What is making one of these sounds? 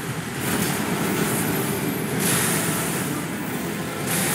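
Flaming debris bursts with a deep rumbling blast.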